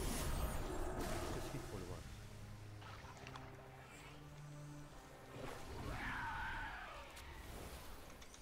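Magic spell effects whoosh and chime.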